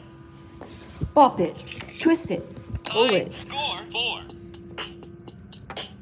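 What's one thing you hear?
An electronic toy beeps and plays short sounds.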